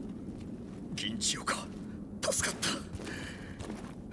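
A young man speaks tensely and close by.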